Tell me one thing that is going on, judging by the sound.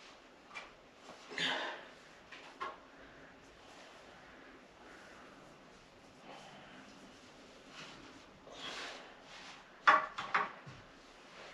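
Paper rustles as a doily is handled.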